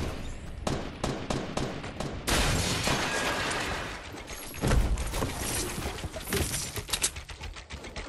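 Building pieces snap into place with rapid clicking knocks.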